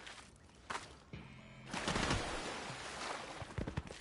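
Water splashes as someone runs through it.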